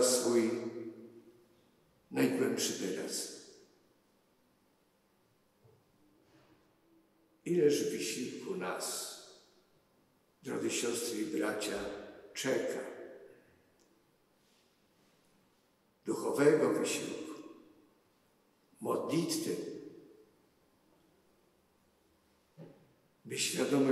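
An elderly man speaks slowly and solemnly into a microphone, in phrases with long pauses, in a reverberant hall.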